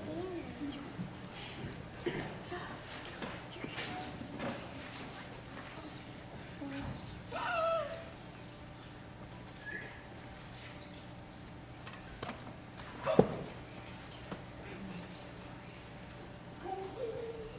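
A woman speaks quietly at a distance.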